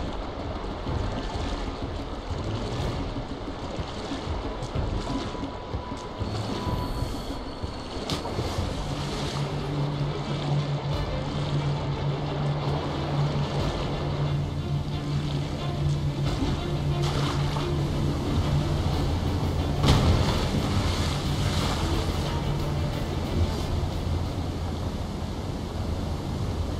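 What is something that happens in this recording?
Rushing water churns and roars steadily.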